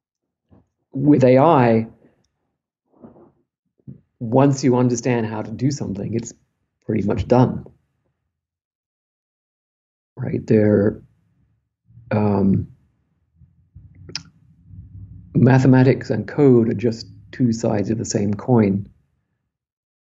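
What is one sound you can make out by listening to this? An older man speaks with animation through an online call, with pauses between phrases.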